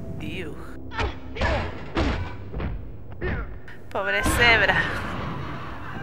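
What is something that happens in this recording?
Blows thud as a fighter strikes an opponent with a stick.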